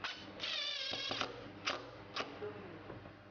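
A cordless drill whirs, driving a screw.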